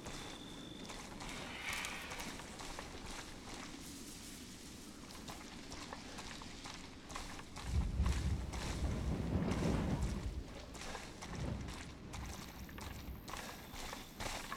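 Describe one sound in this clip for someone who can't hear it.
Footsteps crunch and rustle through dry grass.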